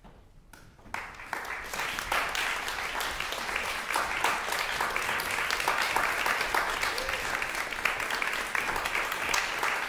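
An audience in a large room applauds loudly and steadily.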